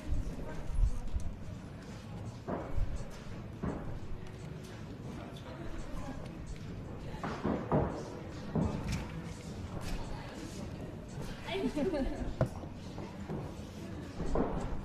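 Bare feet thump and shuffle on a padded floor.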